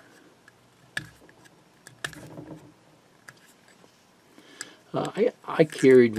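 A small plastic lid clicks.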